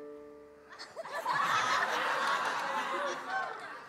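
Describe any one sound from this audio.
An audience cheers and applauds.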